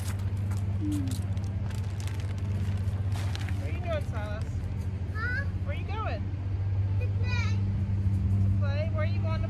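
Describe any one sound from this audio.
A plastic bag rustles and crinkles as it is handled.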